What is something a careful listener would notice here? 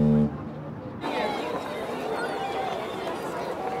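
A crowd of people chatters and walks outdoors.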